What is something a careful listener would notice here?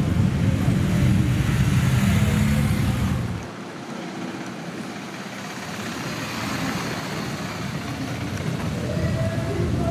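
Motorcycle engines rumble as they ride past.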